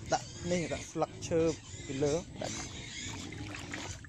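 Water splashes as a wire fish trap is lowered into a shallow pond.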